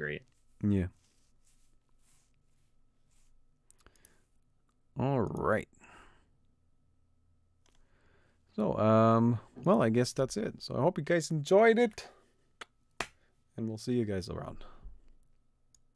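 A young man speaks with animation into a close microphone, in short bursts with pauses.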